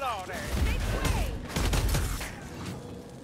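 A gun fires with loud, booming blasts.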